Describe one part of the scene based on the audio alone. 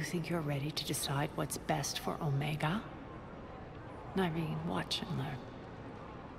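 A woman speaks calmly and coldly, close by.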